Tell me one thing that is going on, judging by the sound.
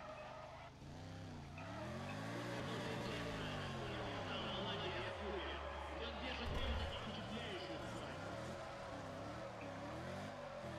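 A sports car engine revs up and down through gear changes.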